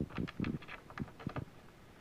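A small screw clicks against a wooden panel.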